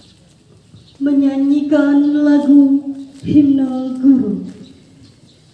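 A man shouts a long, drawn-out command over a loudspeaker outdoors.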